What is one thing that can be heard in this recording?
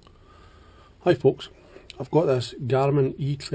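A man talks close by, calmly.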